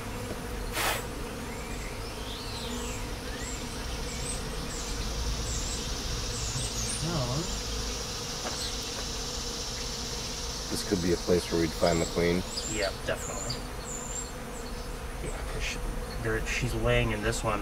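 Bees buzz steadily around an open hive.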